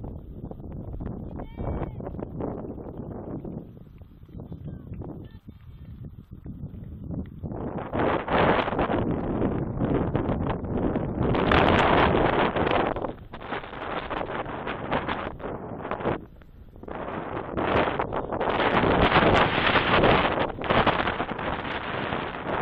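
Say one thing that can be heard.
Wind gusts roar against the microphone outdoors.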